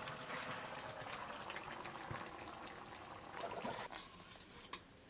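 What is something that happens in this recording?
Food sizzles in a hot pan.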